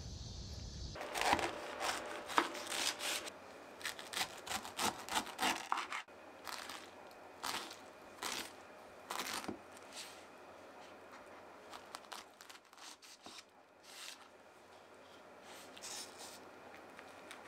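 A knife cuts through pineapple on a wooden board.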